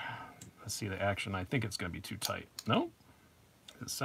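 A folding knife blade snaps shut with a click.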